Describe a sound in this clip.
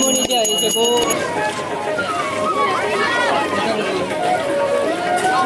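A crowd of men and women sing together nearby.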